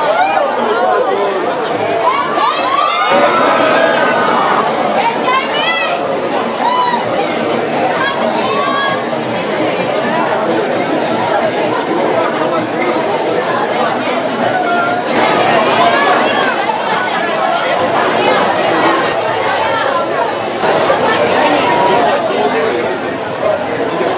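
Women in the crowd shriek and scream with excitement.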